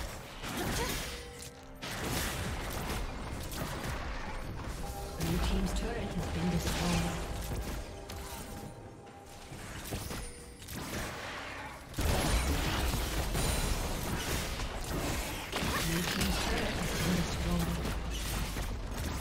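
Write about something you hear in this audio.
Video game spell effects zap and crackle.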